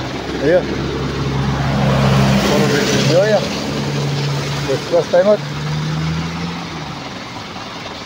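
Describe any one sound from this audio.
A truck engine idles nearby with a low rumble.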